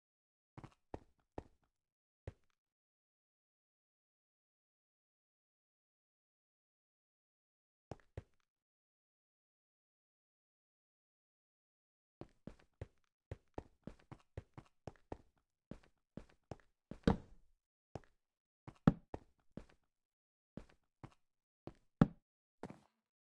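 Blocks are placed with short, dull knocks, one after another.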